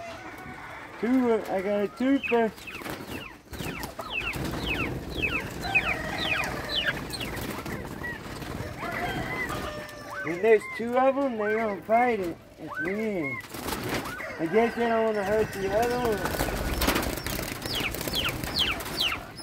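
Hens cluck and squawk close by.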